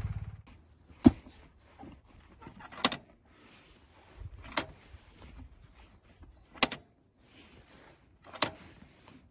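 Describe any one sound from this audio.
A motorcycle footpeg snaps back with a sharp metal click.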